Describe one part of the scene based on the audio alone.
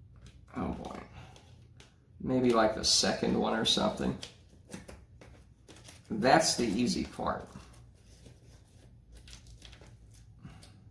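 Foil duct crinkles as hands handle it.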